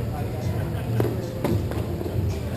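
Sticks click and clack against a ball in a large echoing hall.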